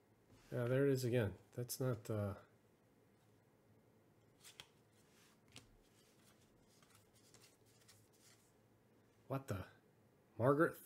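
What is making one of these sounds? Trading cards rustle and slide softly as they are flipped through by hand.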